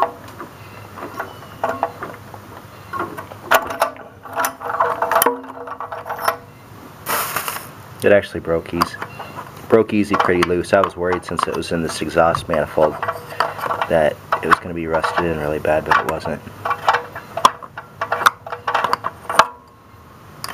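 Metal parts click and scrape as a hand works them loose.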